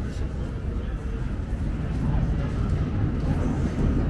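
People chat quietly nearby.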